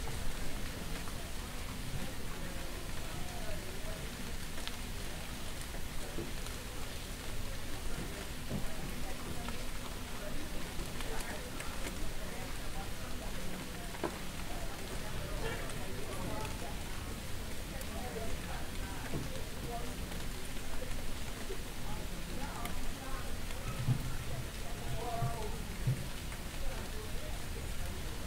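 Adults chat outdoors on a street, a little way off.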